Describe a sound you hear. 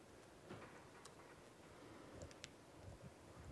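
Keys click on a laptop keyboard.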